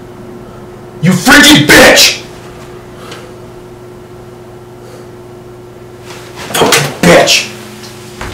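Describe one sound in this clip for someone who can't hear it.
A young man speaks loudly in bursts, nearly shouting.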